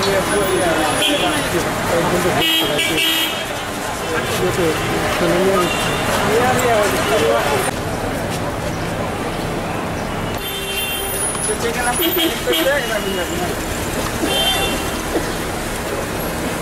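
A crowd of men talks and calls out nearby outdoors.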